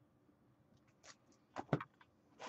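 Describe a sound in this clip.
Paper items thud and knock close by as they are handled.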